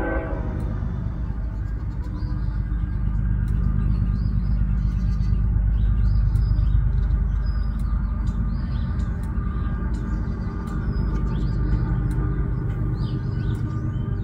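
A goat licks a newborn kid with soft, wet lapping sounds.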